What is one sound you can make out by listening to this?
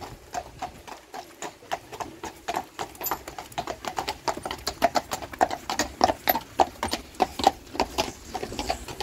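A pair of horses' hooves clop at a walk on asphalt.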